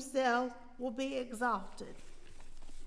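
A woman speaks calmly through a microphone in a large echoing hall.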